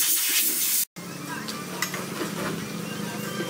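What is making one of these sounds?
Metal pipe fittings clink.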